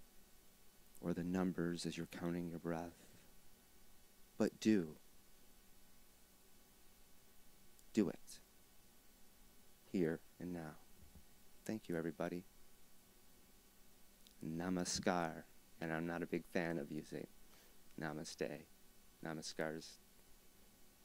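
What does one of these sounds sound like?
A man plays short, breathy pitched phrases on a small harmonica, close by.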